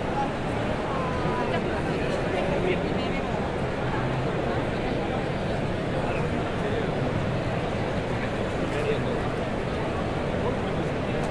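A large indoor crowd murmurs and chatters in an echoing hall.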